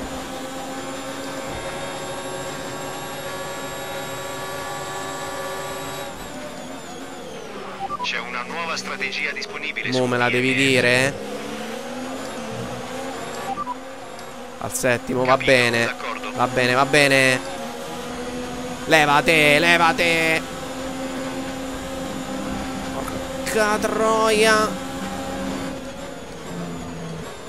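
A racing car engine screams at high revs, rising and dropping sharply with gear changes.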